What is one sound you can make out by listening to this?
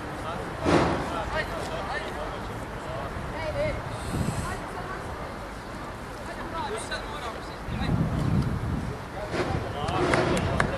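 Wind blows across a microphone outdoors.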